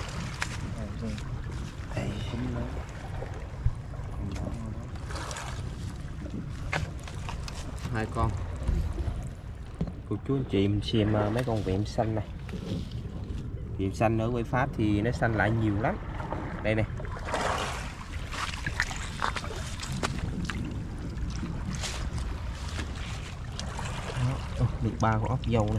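Wet seaweed squelches and rustles under a hand.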